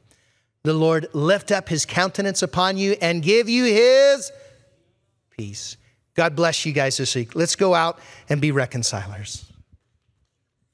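A middle-aged man speaks with animation through a microphone.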